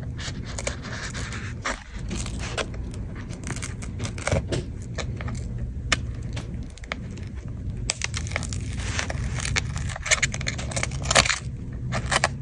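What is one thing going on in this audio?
A metal tool scrapes and clicks against a tablet's edge.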